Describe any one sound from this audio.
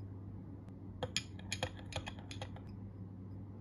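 A straw stirs and taps in a glass.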